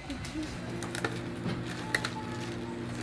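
Ice clinks in a plastic cup as a straw stirs it.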